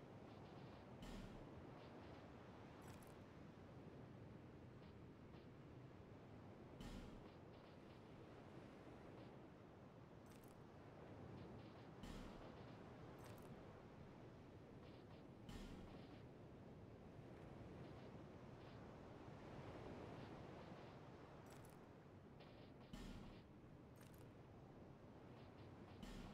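Soft menu clicks sound as items are selected.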